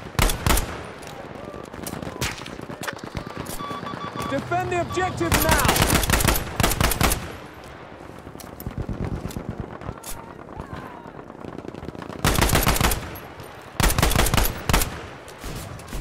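A rifle fires loud sharp shots.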